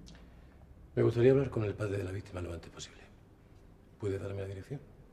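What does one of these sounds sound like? A man speaks tensely and close by.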